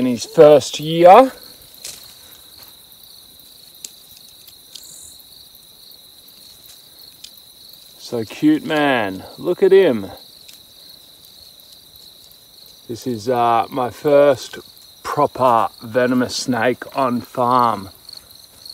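A stick rustles through grass and dry leaves.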